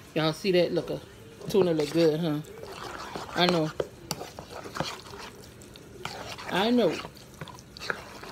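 A fork scrapes and clinks in a bowl of food.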